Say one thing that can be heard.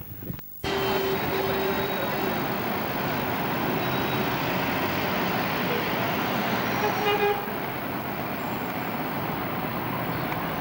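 Busy city traffic roars steadily outdoors.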